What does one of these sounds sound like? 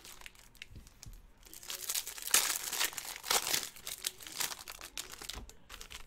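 Foil card wrappers crinkle and tear as they are opened.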